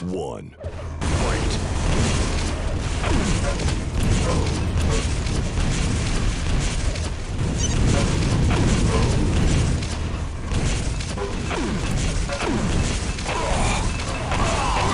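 Rockets whoosh and explode loudly in a video game.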